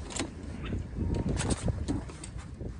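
A door latch clicks as a handle is pushed.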